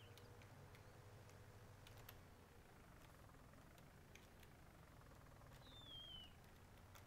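A tractor engine rumbles low and steady.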